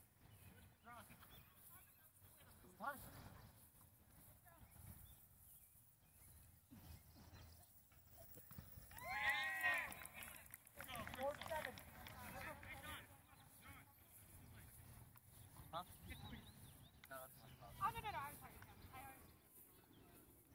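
Children shout and call out to each other across an open field outdoors.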